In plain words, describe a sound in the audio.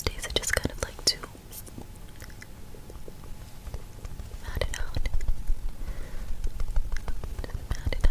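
A makeup sponge taps softly against skin, close to a microphone.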